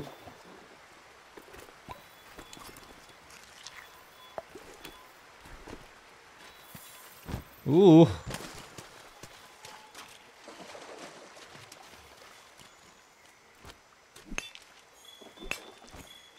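Armoured footsteps clink softly as a figure walks.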